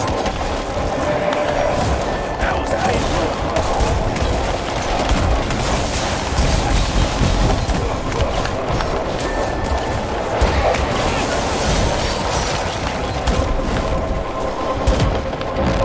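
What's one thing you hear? Gunshots fire rapidly and repeatedly.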